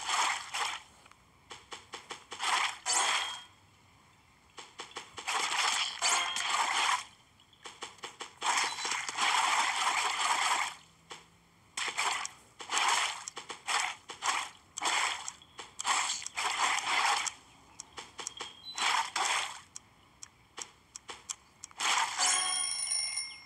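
Wet squelching splats sound as fruit bursts.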